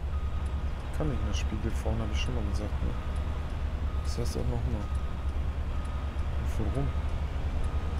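A man talks into a microphone at close range.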